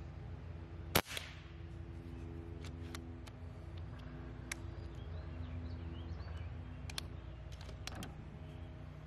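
A PCP air rifle's bolt clicks as it is worked.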